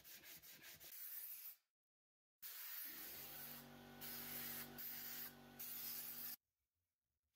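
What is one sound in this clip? Compressed air hisses loudly in bursts from an air nozzle.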